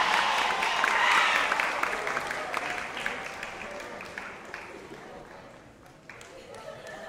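A crowd of young women cheers and screams loudly, then fades.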